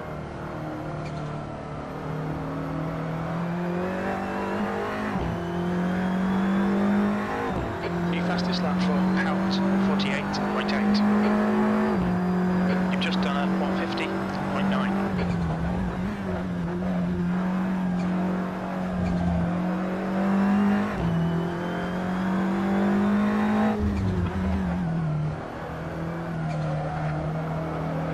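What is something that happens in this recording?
A racing car engine roars, climbing in pitch and dropping sharply as gears change.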